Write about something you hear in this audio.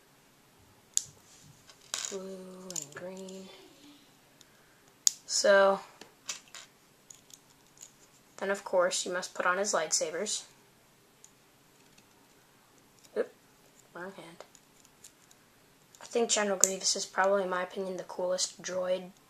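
Small plastic toy pieces click as they are snapped together.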